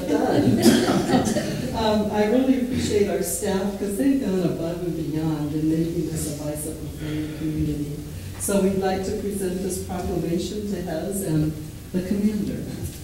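A woman reads out calmly, heard through a microphone in a room with some echo.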